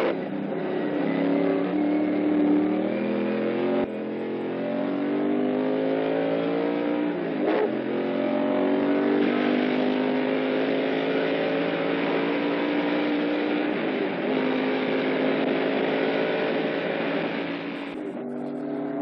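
A race car engine roars at high speed, its pitch rising through the gears and dropping at each shift.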